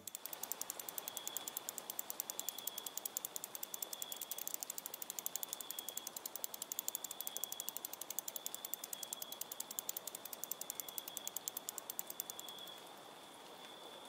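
A bicycle's freewheel ticks rapidly as the bicycle is pushed along.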